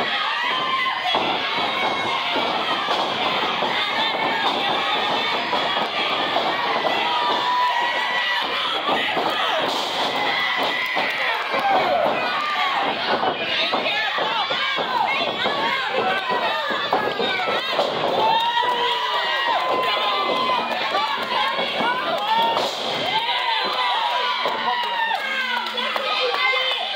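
A crowd of men and women cheers and shouts loudly in a large echoing hall.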